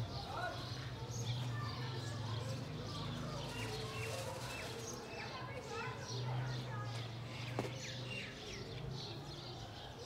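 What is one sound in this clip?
Birds chirp and twitter nearby.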